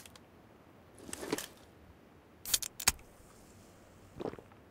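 A drink is gulped down in quick swallows.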